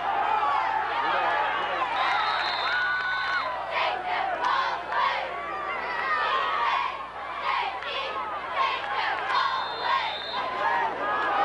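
A large outdoor crowd cheers and shouts.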